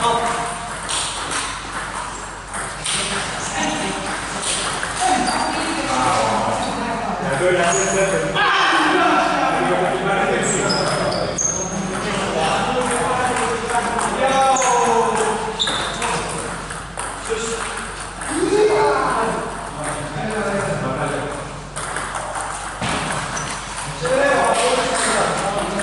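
Men talk with animation nearby in an echoing hall.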